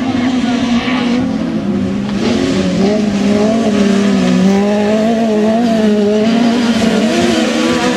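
Tyres skid and spray gravel on a dirt track.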